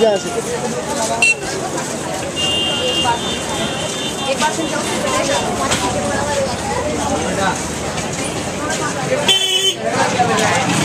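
A busy crowd chatters all around.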